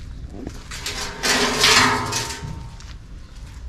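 A metal sheet clatters as it is laid down.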